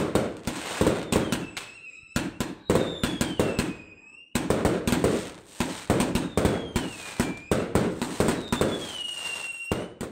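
Rockets whistle as they shoot upward.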